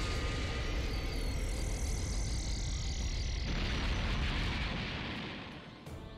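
A huge explosion booms.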